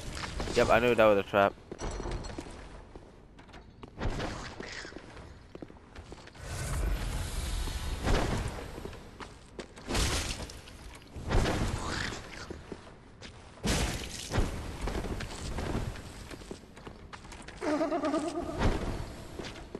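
A creature lets out a wavering shriek.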